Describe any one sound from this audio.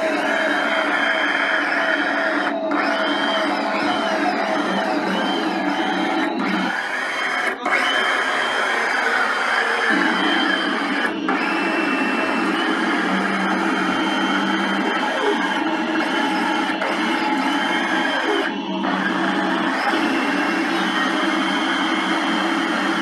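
A loud, harsh buzzing and whirring blares through a megaphone.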